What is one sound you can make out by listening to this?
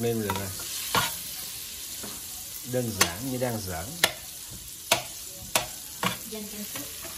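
A spatula scrapes and taps against a pan.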